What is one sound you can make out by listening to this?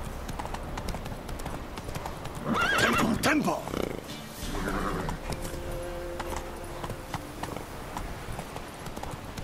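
A horse's hooves thud along a dirt path.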